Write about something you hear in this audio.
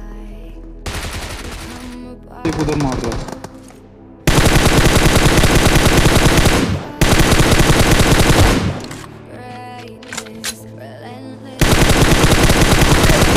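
Rapid automatic gunfire rattles in loud bursts.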